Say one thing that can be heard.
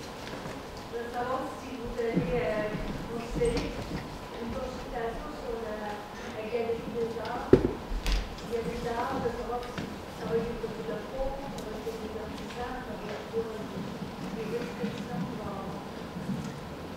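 A man speaks calmly through a loudspeaker in a large echoing hall.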